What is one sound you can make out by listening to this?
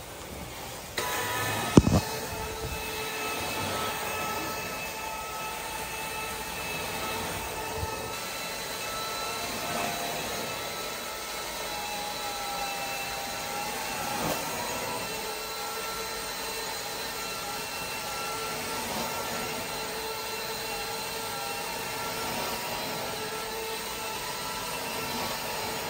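A carpet cleaning machine hums and sucks with a steady whine.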